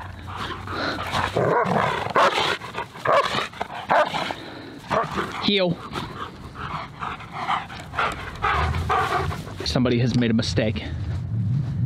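Dogs growl and yelp playfully close by.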